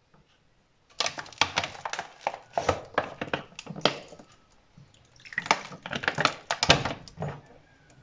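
A plastic bottle crackles and crinkles in a hand.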